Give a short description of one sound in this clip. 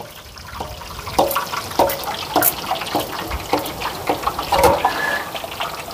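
A metal press squeaks and clicks as dough is pushed through it.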